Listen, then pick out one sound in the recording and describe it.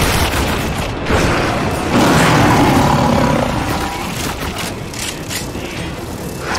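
Monsters screech and roar.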